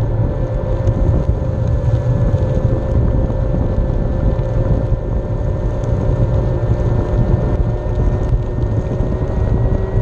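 Wind rumbles past the microphone outdoors.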